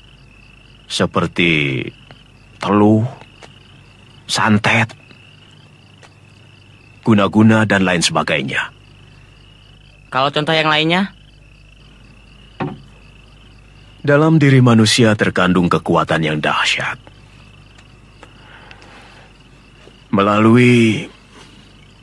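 An elderly man speaks in a low, grave voice, close by.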